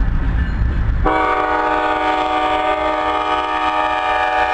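A train horn blasts loudly and steadily nearby.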